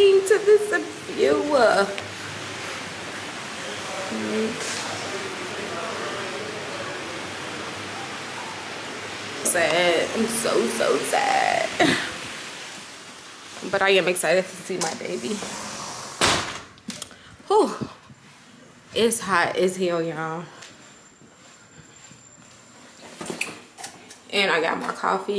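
A young woman talks casually close to the microphone.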